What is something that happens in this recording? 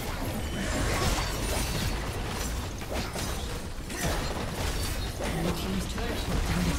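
Spell blasts and hits crackle and burst in a busy game fight.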